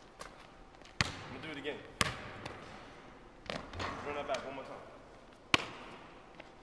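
A basketball bounces on a hard wooden floor, echoing in a large hall.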